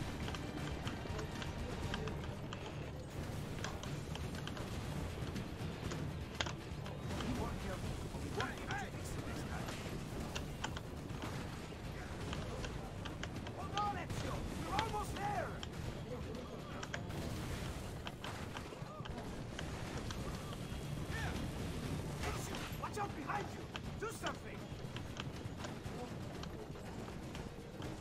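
A horse-drawn carriage rumbles along over rough ground.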